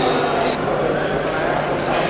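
A male referee calls out loudly.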